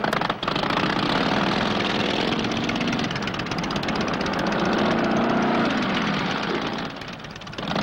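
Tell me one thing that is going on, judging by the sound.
A motorcycle engine roars steadily.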